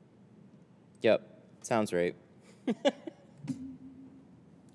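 A young man laughs and exclaims loudly into a close microphone.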